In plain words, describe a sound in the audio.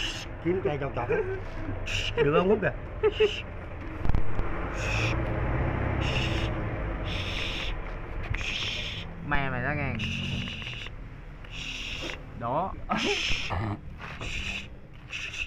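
A snake hisses in sharp bursts.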